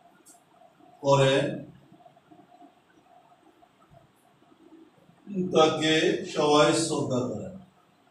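An elderly man speaks nearby in a calm voice.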